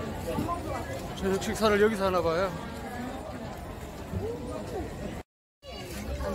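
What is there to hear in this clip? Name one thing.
A crowd chatters in a busy street.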